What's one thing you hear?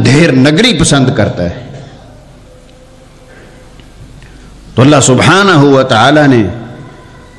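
A middle-aged man preaches forcefully into a microphone, in drawn-out, chanting bursts with pauses between them.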